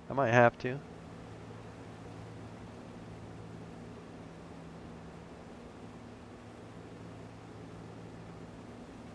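A combine harvester's engine hums steadily.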